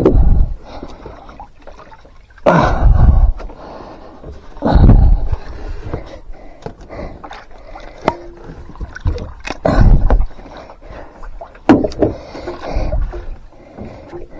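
Water splashes as a fish thrashes at the water's surface.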